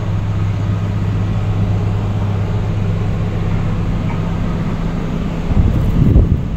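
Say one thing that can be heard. A train carriage rumbles with a steady low hum.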